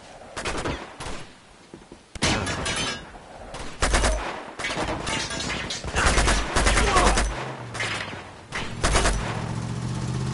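Gunshots fire in loud bursts and echo.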